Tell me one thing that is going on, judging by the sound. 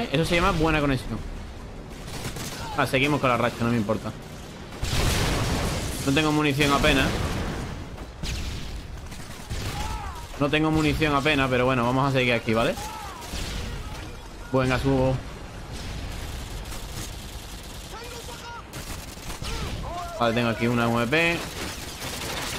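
A young man talks with animation through a headset microphone, close up.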